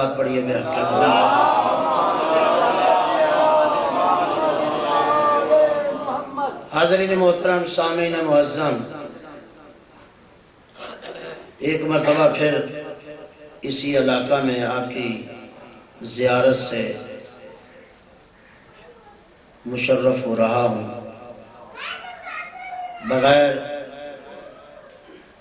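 A man speaks with emphasis into a microphone, heard through a loudspeaker.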